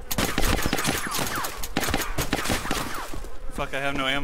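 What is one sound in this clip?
Rifle shots crack rapidly in an echoing hall.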